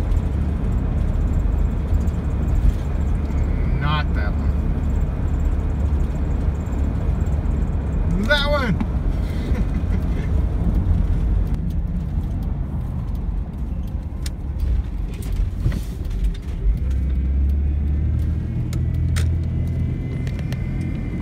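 Road noise rumbles steadily from inside a moving car.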